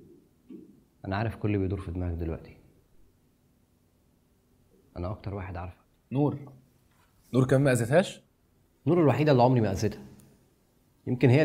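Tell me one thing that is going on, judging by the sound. A man speaks calmly and low.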